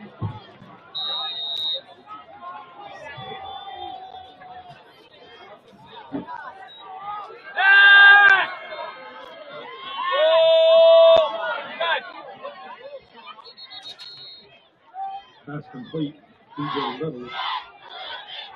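Young men on a sideline shout and cheer outdoors.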